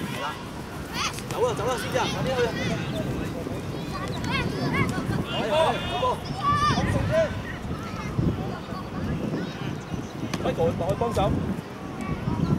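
Children shout outdoors.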